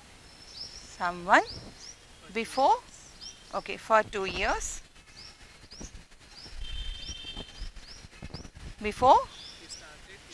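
A woman speaks calmly, like a teacher explaining.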